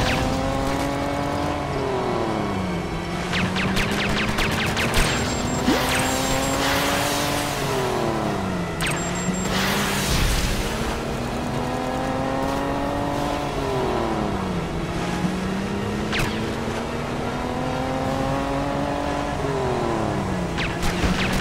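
Water splashes and sprays behind a speeding boat.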